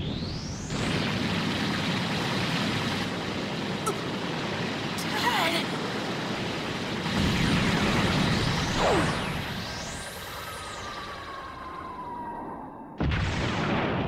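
An energy blast roars and crackles.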